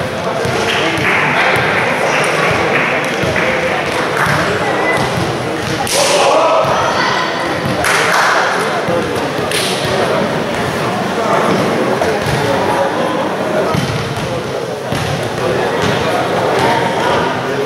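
A crowd of young people chatters and shouts in a large echoing hall.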